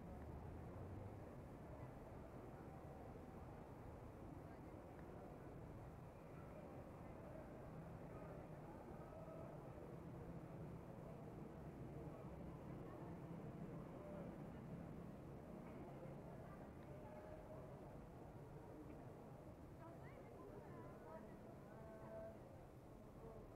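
Men and women chatter faintly in the distance.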